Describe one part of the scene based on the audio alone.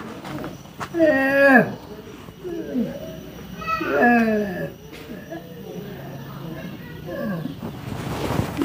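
An elderly man sobs and wails close by.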